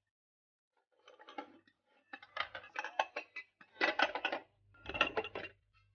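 Glass jars clink against a metal pot.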